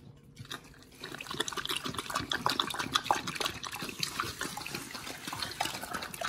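A dog eats noisily, smacking and lapping wetly.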